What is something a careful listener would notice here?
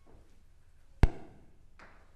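A guitar knocks against a stand.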